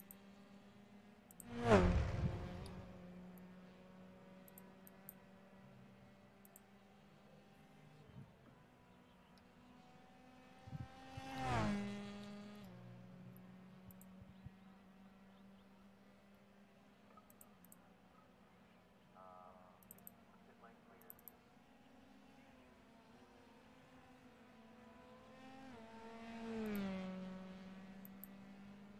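A racing car engine hums steadily.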